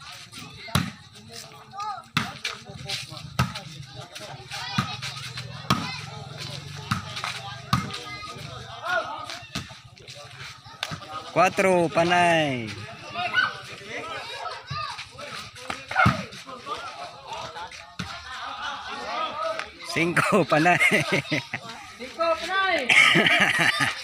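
A ball is struck by hands and feet with sharp thumps.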